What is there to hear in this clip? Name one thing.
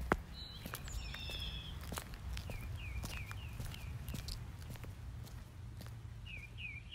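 Footsteps walk along a roadside.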